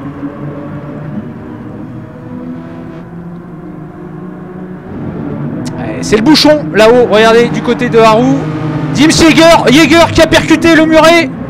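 Racing car engines drone and whine steadily.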